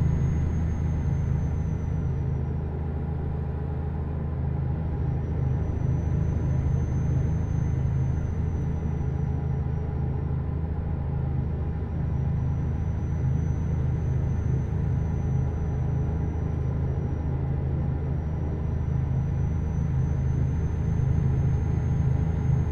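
Tyres rumble over a snowy road.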